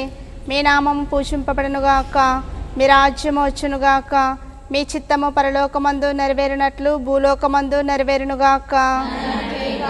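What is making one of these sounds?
A woman sings a slow hymn close to a microphone.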